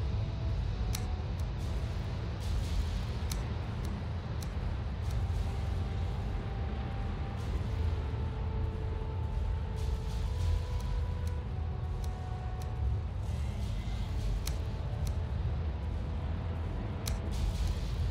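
Short game interface clicks sound now and then.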